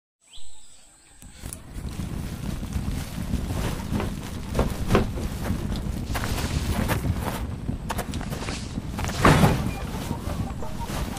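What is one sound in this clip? Leaves rustle softly in the breeze.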